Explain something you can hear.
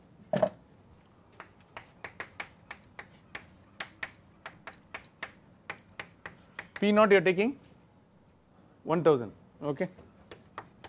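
Chalk taps and scrapes on a chalkboard.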